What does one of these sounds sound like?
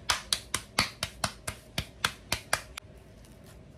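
Hands pat corn masa dough flat between the palms.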